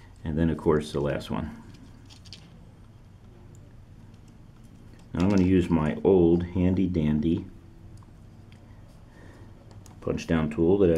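Thin wires rustle and click softly as they are pressed into a small plastic connector.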